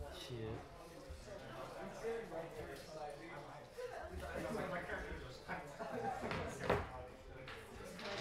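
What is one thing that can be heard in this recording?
Plastic game pieces click lightly on a table.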